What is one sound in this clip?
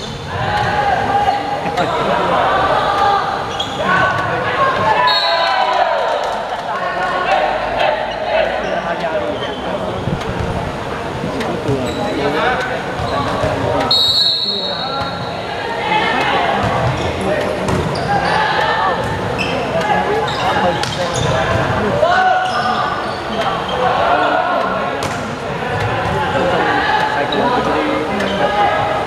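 A volleyball thumps as it is hit back and forth.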